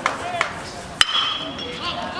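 A metal baseball bat cracks sharply against a ball.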